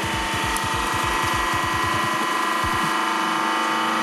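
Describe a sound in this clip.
A small plastic toy cracks and crunches under a hydraulic press.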